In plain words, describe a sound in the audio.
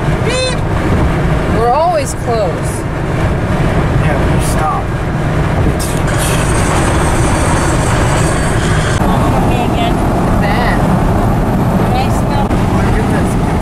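A car engine hums and tyres roar steadily on the road from inside the car.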